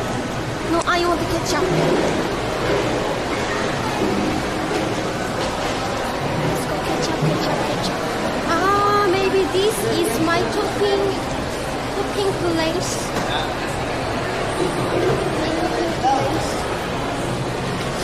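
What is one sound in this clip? A young woman talks close by in a lively voice.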